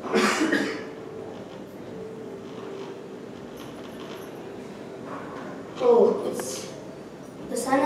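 A woman speaks loudly with animation in an echoing room.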